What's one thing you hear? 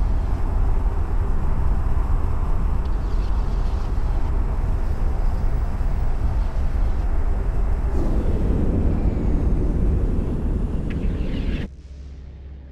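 A spaceship engine roars steadily, then cuts off suddenly.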